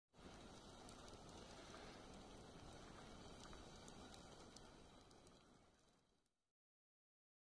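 A campfire roars steadily.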